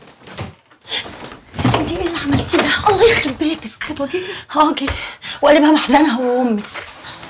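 A young woman speaks heatedly up close.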